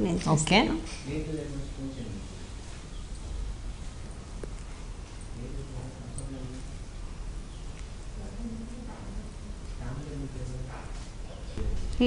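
A second woman speaks softly in reply.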